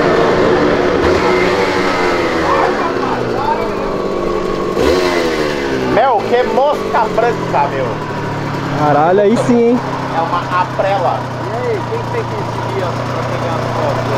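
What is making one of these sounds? A motorcycle engine rumbles as the bike rides slowly closer.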